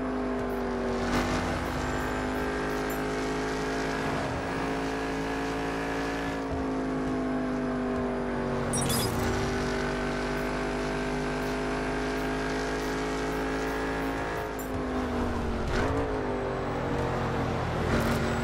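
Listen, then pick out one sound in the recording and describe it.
A sports car engine roars at high speed.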